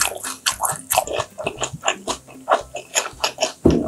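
Liquid pours from a bottle into a small glass.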